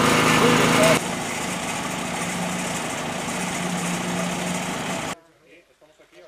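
A concrete mixer truck engine idles with a low drone.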